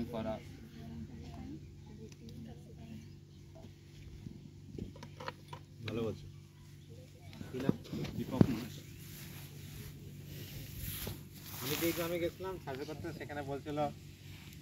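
A young man speaks calmly outdoors, addressing a group.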